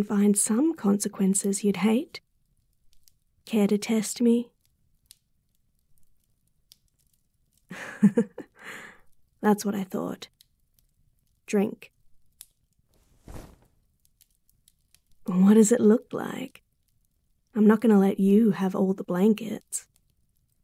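A young woman speaks playfully and close to a microphone, with pauses.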